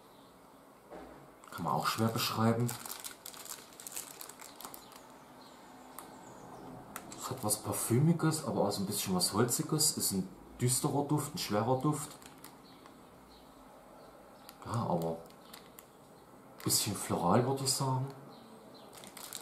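A plastic wrapper crinkles in someone's hands.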